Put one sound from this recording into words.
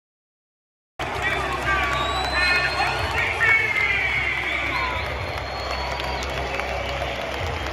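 A large stadium crowd chants and sings loudly all around.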